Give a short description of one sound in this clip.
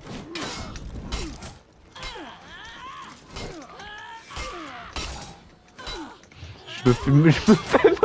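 Metal swords clash and ring.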